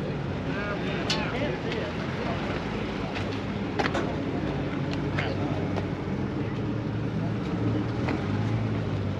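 Men and women chat at a distance outdoors.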